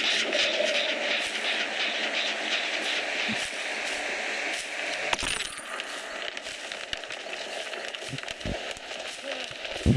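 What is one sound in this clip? Footsteps crunch through dry undergrowth.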